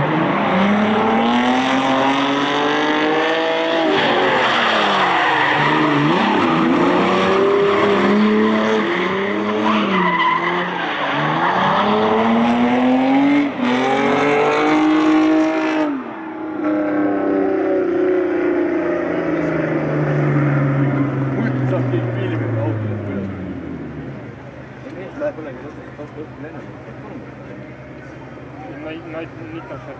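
Car engines roar and rev hard as cars drift.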